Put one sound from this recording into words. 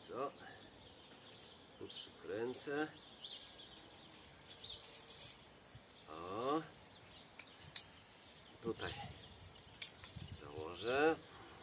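An elderly man talks calmly nearby, outdoors.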